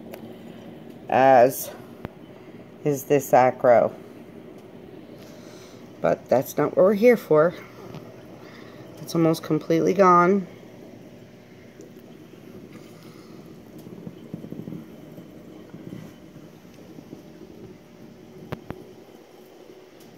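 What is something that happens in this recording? Water trickles and bubbles softly and steadily.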